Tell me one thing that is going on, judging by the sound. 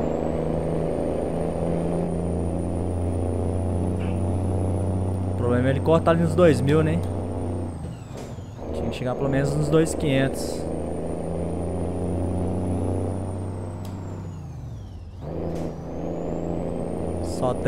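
A truck engine drones steadily, rising and falling as it shifts gears.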